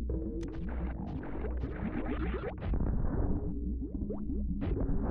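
Retro video game music plays with electronic tones.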